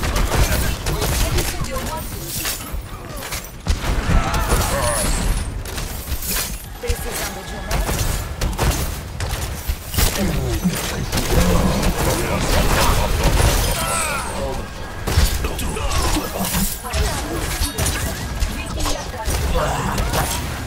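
Heavy gunfire rattles rapidly in bursts.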